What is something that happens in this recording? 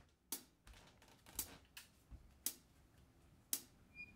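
Bare feet step softly across a wooden floor.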